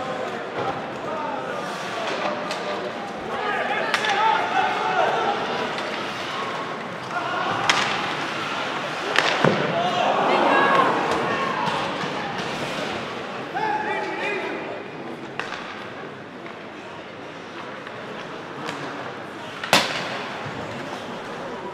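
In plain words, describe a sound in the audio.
Ice skates scrape across the ice.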